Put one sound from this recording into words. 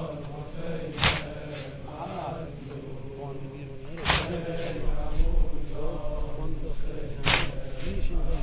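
A crowd of men beat their chests in heavy, slow strokes.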